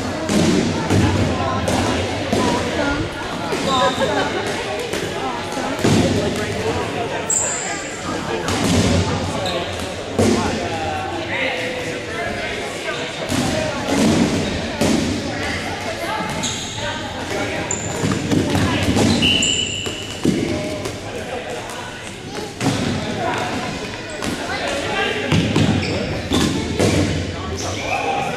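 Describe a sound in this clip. A crowd of young women chatter and shout in a large echoing hall.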